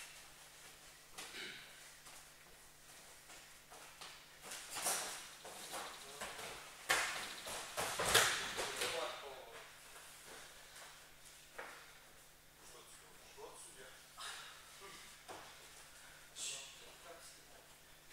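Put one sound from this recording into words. Bare feet shuffle and thud on a padded mat.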